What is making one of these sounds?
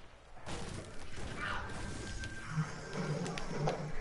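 A pickaxe strikes rock.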